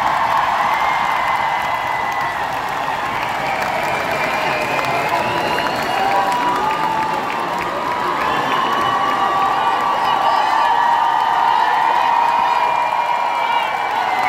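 A large crowd chatters and murmurs all around.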